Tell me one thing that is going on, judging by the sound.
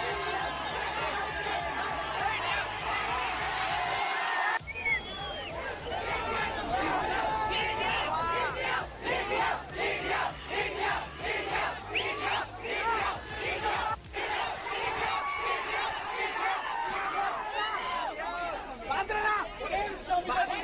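Young men shout and cheer close by.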